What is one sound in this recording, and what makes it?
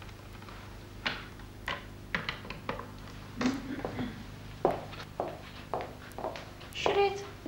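Footsteps knock on a hard floor.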